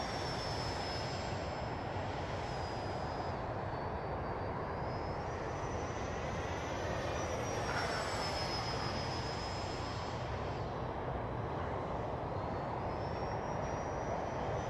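A small plane's engine drones steadily high overhead.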